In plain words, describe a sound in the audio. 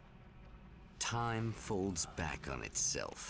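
A woman speaks close to a microphone.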